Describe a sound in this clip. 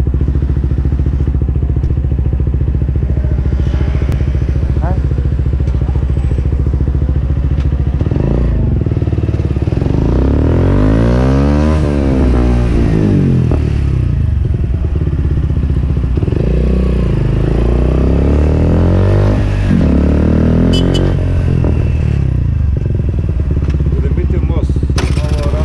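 A motorcycle engine idles, then revs up and down while riding.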